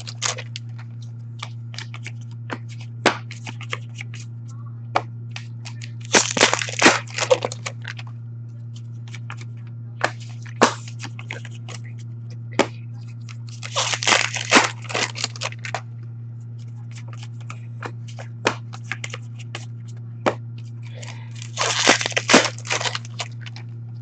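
Cards are tapped and dropped onto a stack with light clicks.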